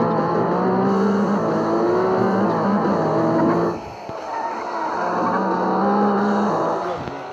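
A car engine roars steadily at high revs, dropping briefly before building up again.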